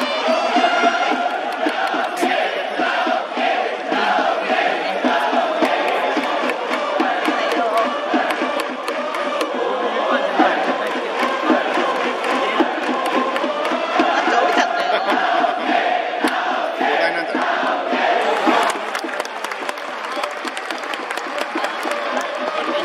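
A large crowd chants and sings loudly in an open stadium.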